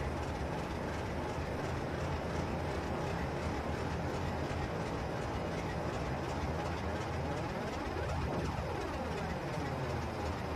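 A diesel train engine rumbles steadily as the train moves slowly.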